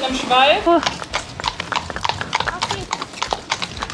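Horse hooves clop on paving stones.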